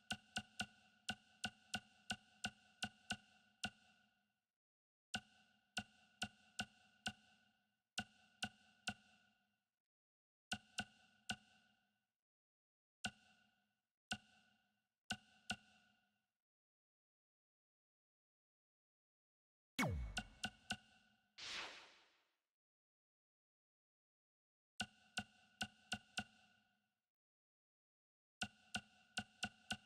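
Short electronic menu ticks sound in quick bursts.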